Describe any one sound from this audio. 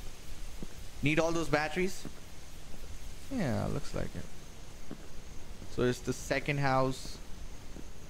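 A young man speaks casually into a close microphone, in short bursts.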